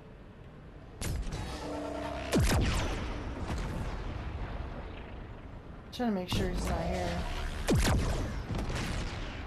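A flying saucer's beam zaps and whooshes in bursts.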